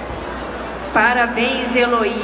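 A woman speaks through a loudspeaker.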